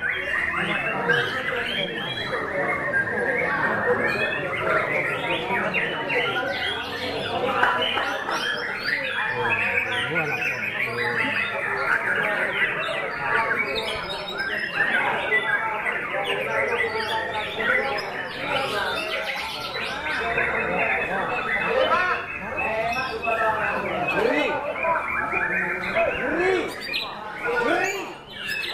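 A songbird sings loudly with rapid, varied chirps and trills.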